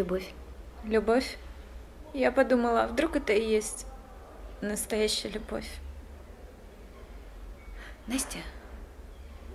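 A woman speaks quietly and tensely, close by.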